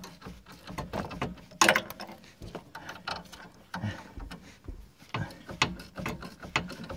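A gloved hand scrapes and scrubs at metal parts under a car.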